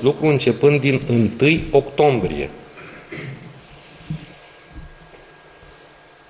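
A middle-aged man speaks into microphones.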